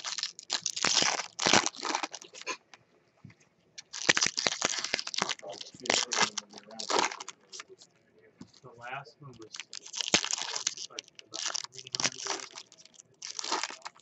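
Foil wrappers crinkle and tear as card packs are ripped open.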